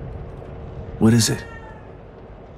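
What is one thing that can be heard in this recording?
A cat meows.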